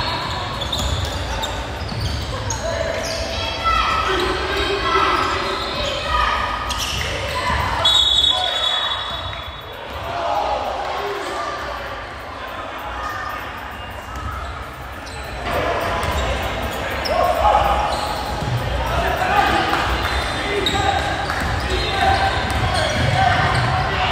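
Voices of players and spectators shout and call out in an echoing gym.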